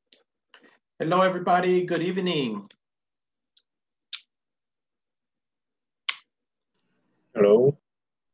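A man speaks with animation through an online call, in short bursts.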